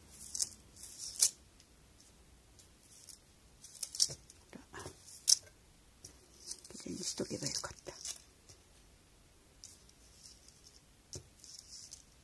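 Glass beads click and rattle softly on a string as they are handled.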